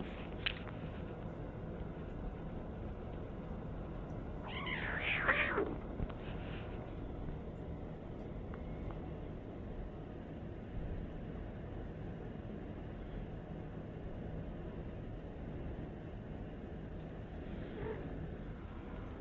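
Kittens scuffle and paw at soft fabric.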